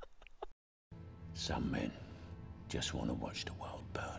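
A young man laughs close to a headset microphone.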